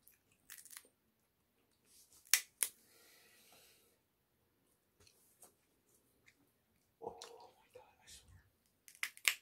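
A man pulls apart and crinkles a plastic wrapper close by.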